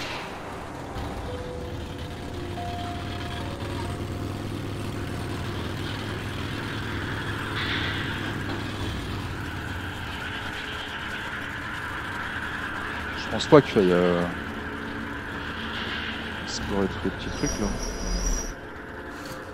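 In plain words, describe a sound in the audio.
A rail cart rumbles steadily along tracks.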